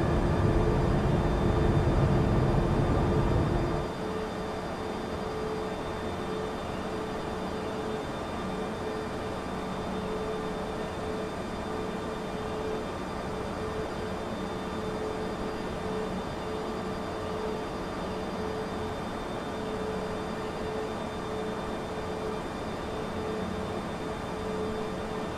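Jet engines roar steadily with a low whine.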